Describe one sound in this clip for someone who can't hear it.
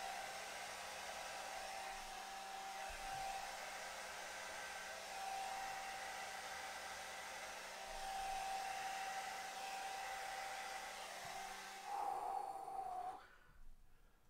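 A hair dryer blows with a steady whir.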